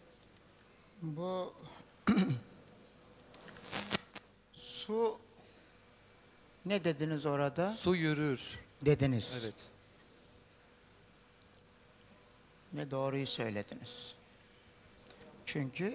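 A woman speaks calmly into a microphone, pausing often.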